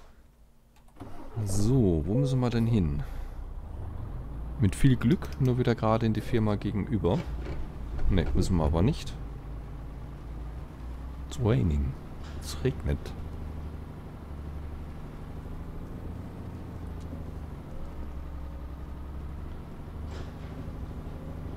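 A truck engine rumbles low and steady as it drives.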